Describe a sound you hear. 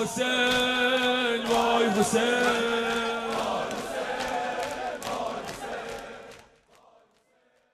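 A young man chants a mournful song loudly through a microphone, with echo, then fades out.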